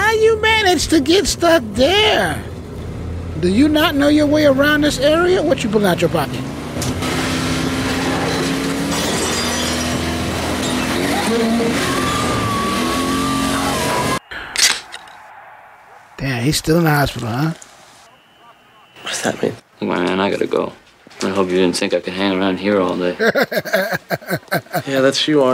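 A man laughs loudly close to a microphone.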